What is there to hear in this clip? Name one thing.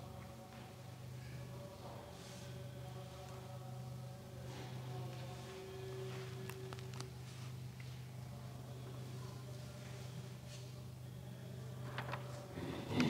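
A man chants slowly in a large echoing room.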